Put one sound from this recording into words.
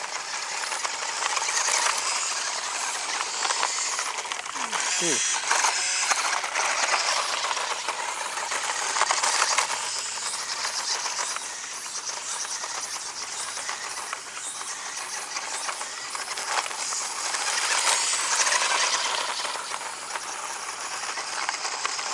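Small tyres crunch and scatter gravel.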